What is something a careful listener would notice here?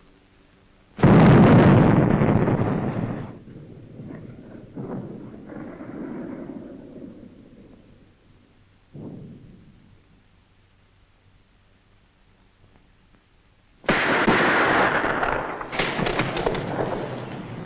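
A loud explosion booms nearby and rubble rumbles down.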